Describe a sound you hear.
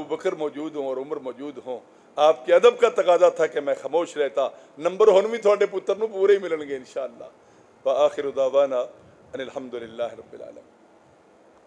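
A middle-aged man speaks with animation into a microphone, heard through a loudspeaker.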